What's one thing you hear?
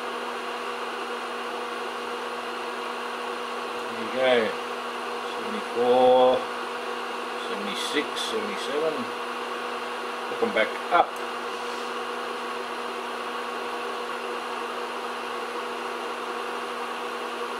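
A transformer hums steadily.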